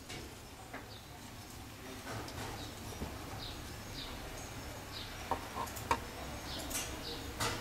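Thin wooden pieces tap and knock softly against each other.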